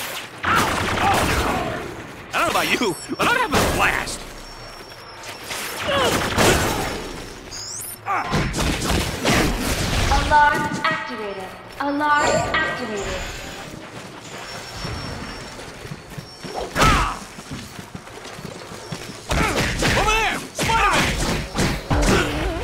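Energy blasts zap and whoosh.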